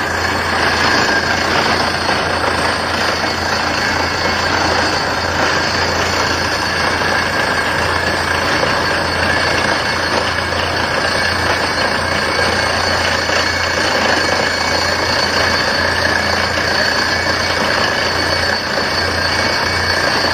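Compressed air and dust blast out with a loud hiss.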